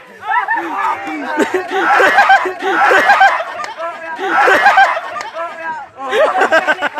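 Several young men shout and cheer excitedly nearby, outdoors.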